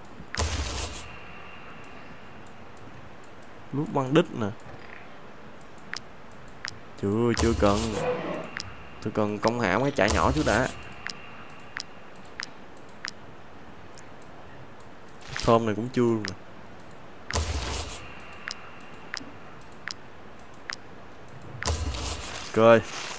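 Short soft clicks sound now and then as menu buttons are pressed.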